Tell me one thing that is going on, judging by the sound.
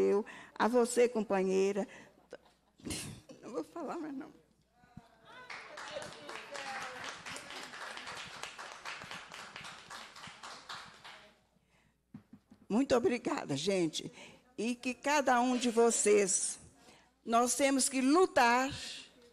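An elderly woman speaks with feeling into a microphone.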